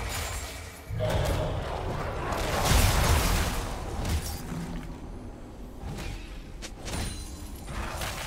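Magic spells burst and crackle in a fast fight.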